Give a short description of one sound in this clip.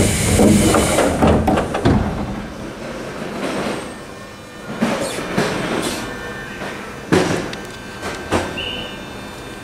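A train rumbles and clatters as it slowly pulls away.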